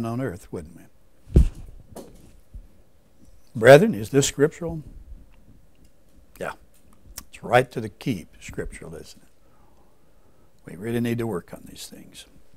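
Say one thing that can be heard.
An older man speaks calmly into a microphone in short phrases with pauses.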